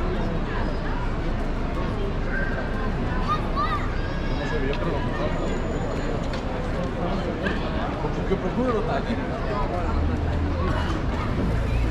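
Footsteps shuffle across paving stones.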